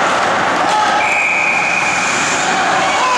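A referee's whistle blows a short shrill blast.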